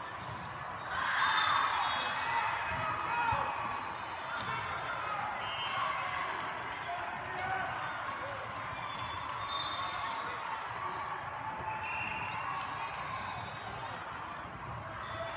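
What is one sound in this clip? A volleyball thumps off hands.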